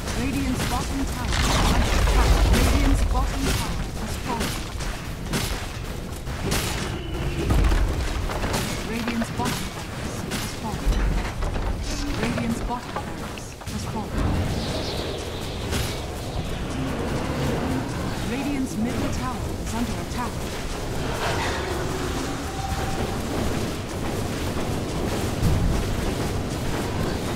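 Spell blasts and magical zaps crackle in a game battle.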